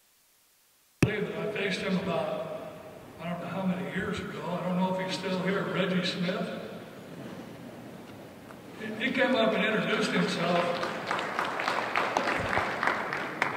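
An elderly man speaks calmly through a microphone and loudspeakers.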